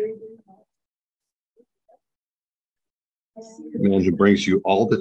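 An elderly woman speaks with animation, close by.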